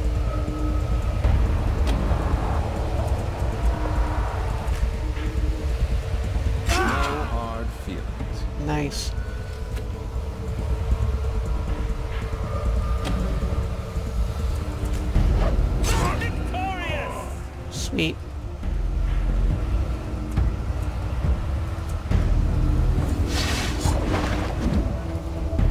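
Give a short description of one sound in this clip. Low, dark music plays steadily.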